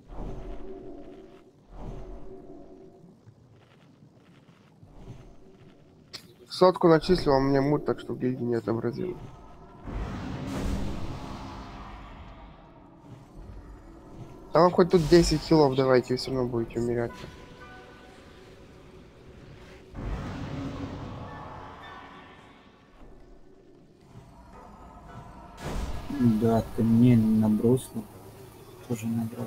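Magic spells whoosh and crackle in a game.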